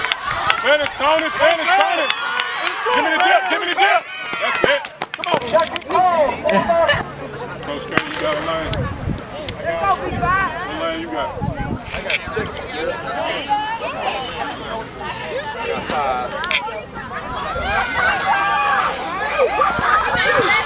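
A crowd of spectators cheers and shouts outdoors.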